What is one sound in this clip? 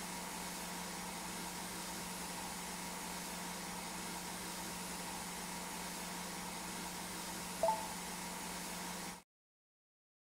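A pressure washer sprays water on a wheel with a steady hiss.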